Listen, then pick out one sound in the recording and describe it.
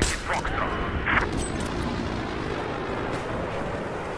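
A rifle bolt clicks as it is worked.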